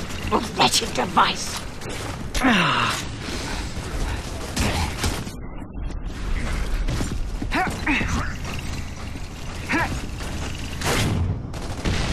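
Heavy armored footsteps thud on stone as a soldier runs.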